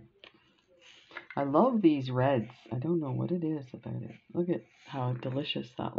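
Small glass beads rattle as they pour out of a jar onto a table.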